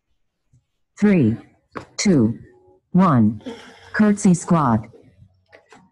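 A woman calls out loudly with energy over an online call.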